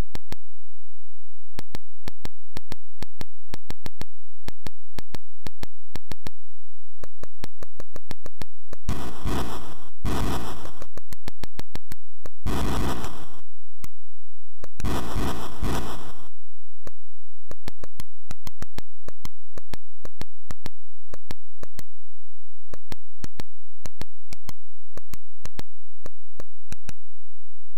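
Quick electronic clicks tick steadily as a game character digs through earth.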